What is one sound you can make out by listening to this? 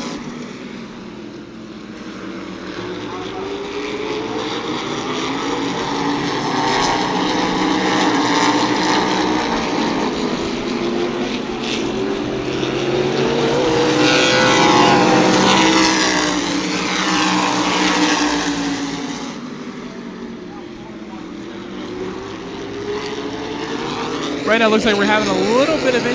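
Race car engines roar around a track, rising and falling as the cars pass.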